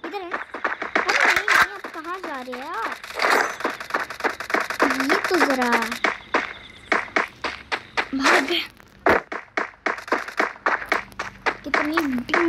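Footsteps run quickly over grass and rock.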